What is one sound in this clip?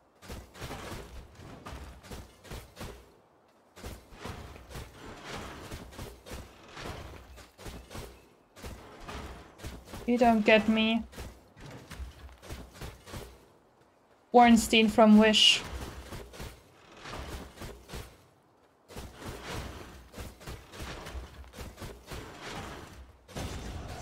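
Blows and slashes clash rapidly in a game fight.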